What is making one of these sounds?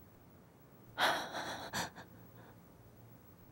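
A woman speaks softly and breathlessly.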